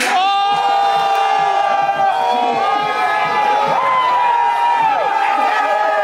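A crowd of young men cheers and shouts loudly.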